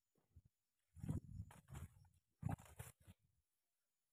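Dry palm fronds rustle as they are brushed aside.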